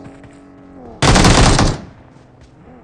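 A gun fires a loud, rapid burst of shots.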